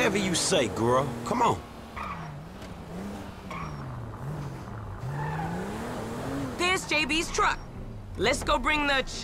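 A car engine hums and revs as the car drives slowly.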